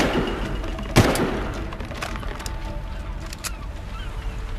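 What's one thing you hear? A rifle magazine clicks and rattles into place.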